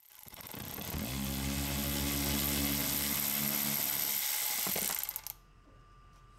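A cordless ratchet whirs steadily.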